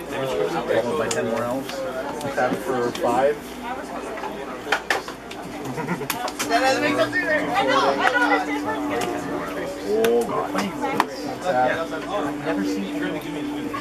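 Cards are tapped and laid down on a table.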